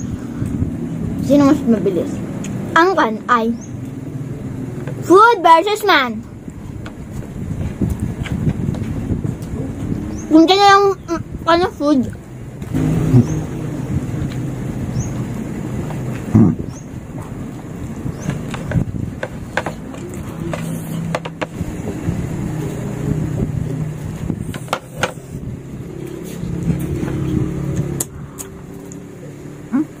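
A man and a girl chew and smack their lips while eating.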